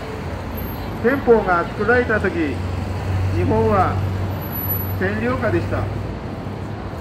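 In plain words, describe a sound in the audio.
An elderly man speaks loudly into a microphone, heard through a loudspeaker outdoors.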